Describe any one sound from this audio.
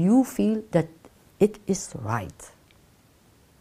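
An elderly woman speaks calmly and close to a microphone.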